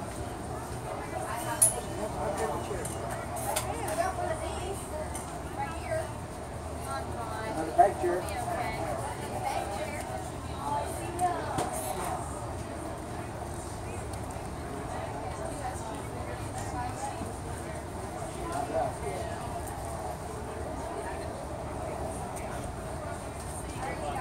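A crowd of men and women chatters in the background outdoors.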